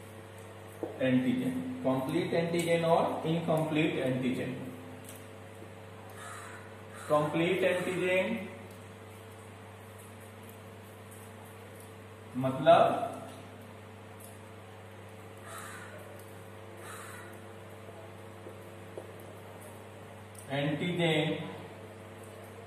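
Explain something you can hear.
A man lectures calmly in short bursts, close by.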